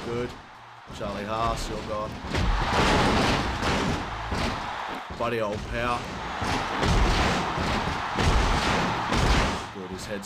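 Bodies thud heavily onto a wrestling mat.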